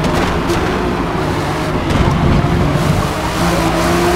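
Tyres squeal around a corner.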